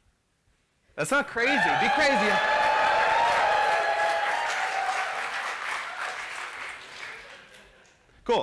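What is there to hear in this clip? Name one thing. A crowd cheers and applauds loudly in a large hall.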